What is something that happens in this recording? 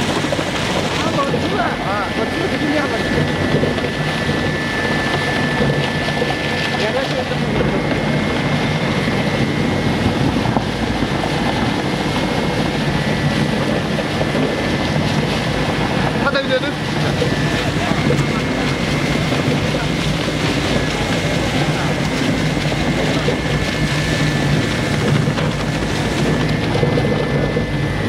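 An industrial shredder grinds and rumbles loudly and steadily.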